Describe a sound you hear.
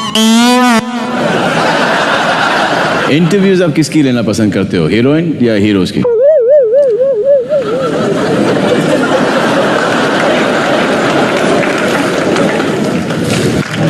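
A large audience laughs loudly.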